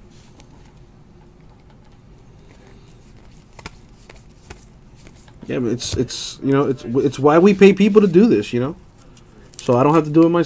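Trading cards rustle and click softly as hands flip through them.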